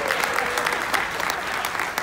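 A choir of young women sings a final note in a large echoing hall.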